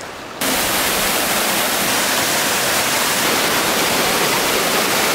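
A waterfall rushes and splashes loudly and steadily.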